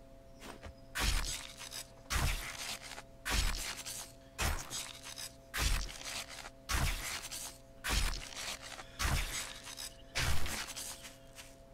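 A knife hacks into a carcass with repeated wet, heavy thuds.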